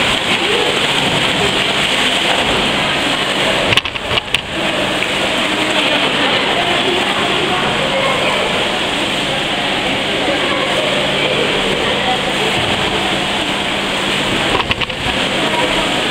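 A swimmer splashes steadily through water in a large echoing hall.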